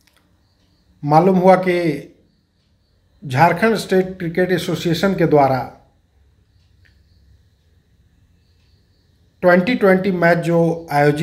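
A middle-aged man speaks calmly and steadily into a close microphone, in short bursts with pauses.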